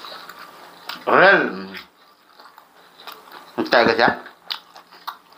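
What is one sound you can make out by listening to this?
A young man lets out a loud burp.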